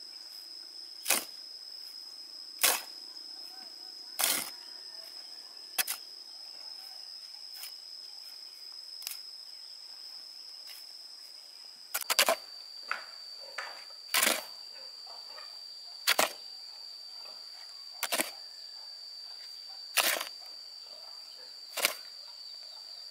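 A shovel scrapes and scoops through sand and cement at a steady pace.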